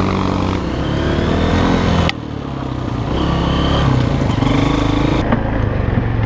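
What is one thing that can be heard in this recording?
A motorbike engine buzzes and revs up close.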